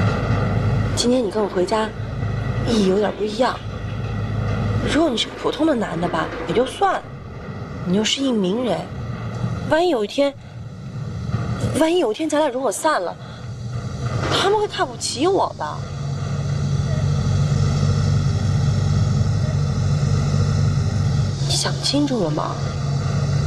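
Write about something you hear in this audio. A woman talks earnestly, close by.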